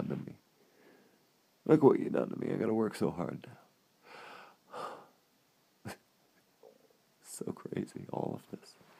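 A man speaks quietly and playfully, very close to the microphone.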